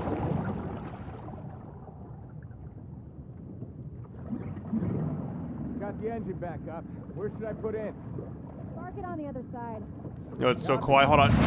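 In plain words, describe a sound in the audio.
Water gurgles and churns, heard muffled as if underwater.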